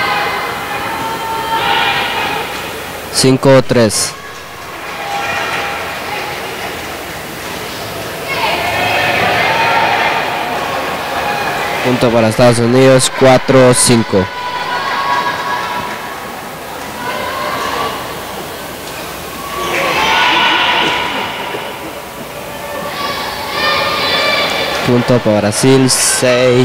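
Voices murmur in the background of a large hall.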